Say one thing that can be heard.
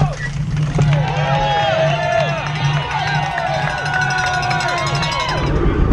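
A crowd of spectators cheers and shouts beside the road.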